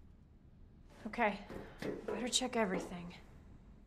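A young woman speaks quietly to herself.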